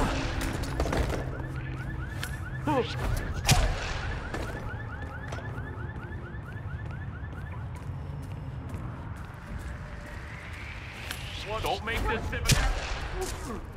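Footsteps walk on hard pavement outdoors.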